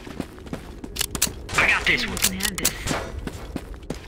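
Pistol shots crack nearby.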